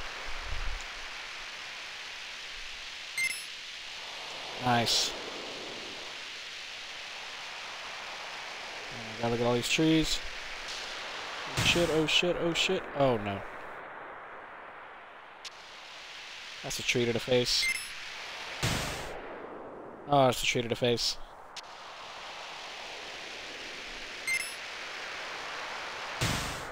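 A snowboard hisses steadily as it slides fast over snow.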